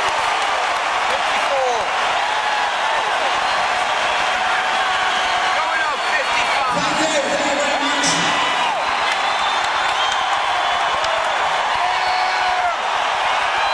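Members of a crowd whistle shrilly.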